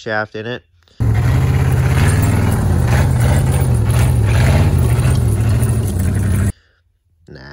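An old truck engine runs with a loud, rough rumble.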